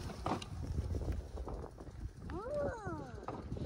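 Stroller wheels roll over a gravel path.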